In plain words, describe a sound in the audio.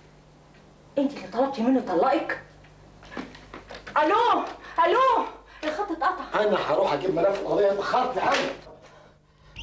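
A middle-aged woman talks into a telephone.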